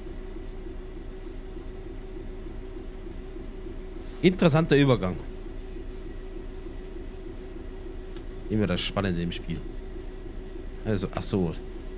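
A train engine hums steadily while the train runs along the tracks.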